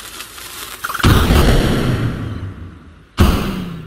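A loud booming explosion bursts.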